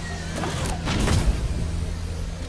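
A spacecraft lands with a heavy thud.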